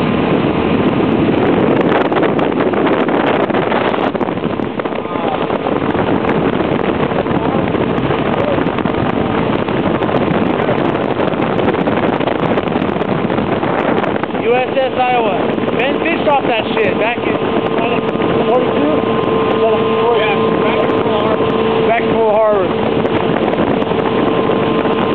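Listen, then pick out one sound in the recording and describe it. A boat's engine hums steadily.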